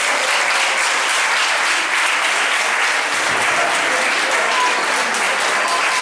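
A crowd of young people applauds loudly in a room.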